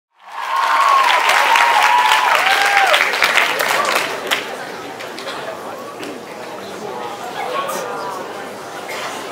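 An audience in a large hall claps and cheers.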